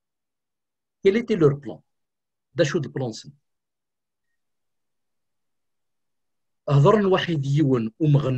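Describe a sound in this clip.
A middle-aged man speaks with animation over an online call, in short bursts with pauses.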